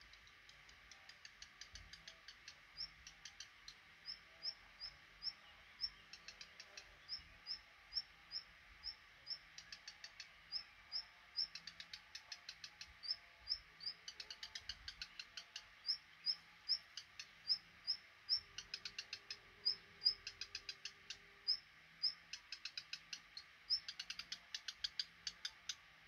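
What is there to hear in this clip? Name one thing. Baby birds in a nest cheep in high, rapid bursts close by.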